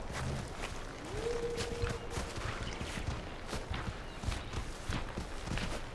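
Tall grass rustles underfoot.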